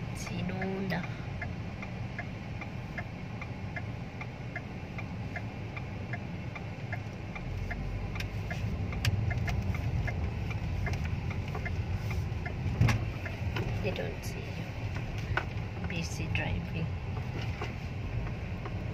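A car engine hums steadily from inside the car as it drives.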